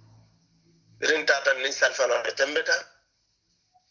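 A young man speaks briefly and calmly, close to the microphone.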